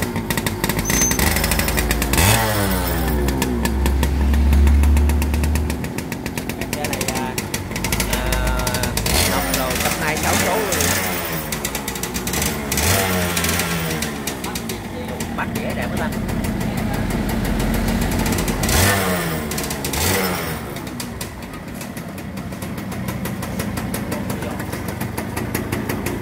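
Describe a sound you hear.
A motorcycle engine idles steadily nearby.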